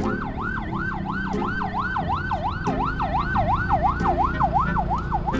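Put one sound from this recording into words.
An ambulance siren wails rapidly up and down close by.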